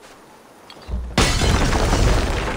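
A fire bursts and roars loudly.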